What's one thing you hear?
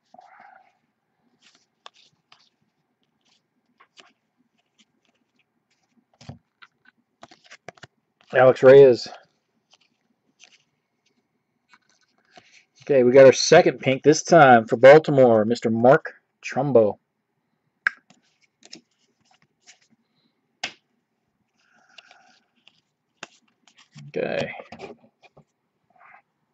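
Trading cards rustle and flick softly as they are shuffled by hand.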